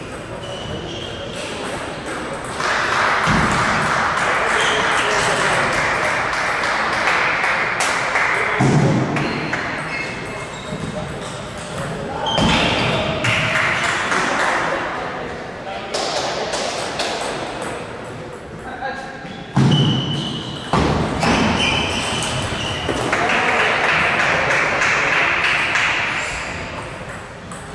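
A table tennis ball clicks back and forth on paddles and the table.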